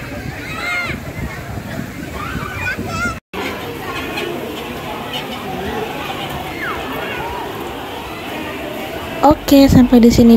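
A crowd of children and adults chatter and shout around a pool outdoors.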